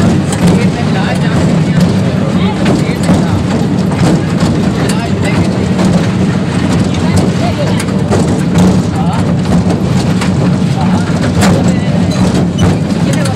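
A small motor vehicle's engine rumbles steadily close by.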